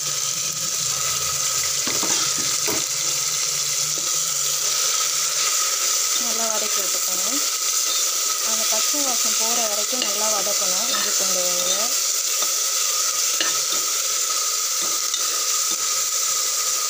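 Onions sizzle steadily in hot oil.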